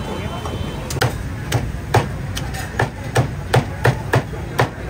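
A cleaver chops meat on a wooden block with sharp, rapid thuds.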